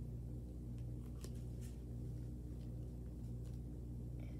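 Paper rustles and crinkles in a girl's hands.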